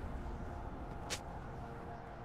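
A sharp magical blast cracks once.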